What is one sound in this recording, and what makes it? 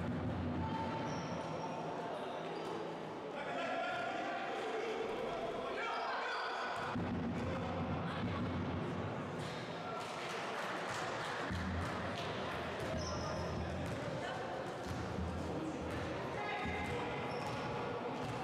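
Young women call out to each other across an echoing hall.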